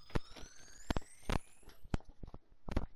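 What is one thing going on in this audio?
An electronic tone rises steadily in pitch.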